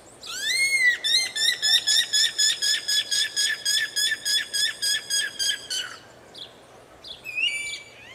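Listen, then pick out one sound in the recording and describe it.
A bird sings loudly nearby in a fast, repeated series of clear whistling notes.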